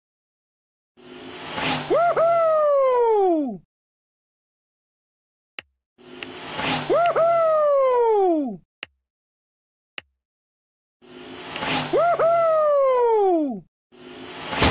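A game plays a falling whistle as a cartoon car flies past.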